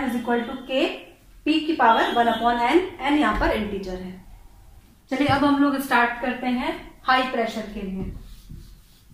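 A young woman speaks calmly and clearly nearby, explaining.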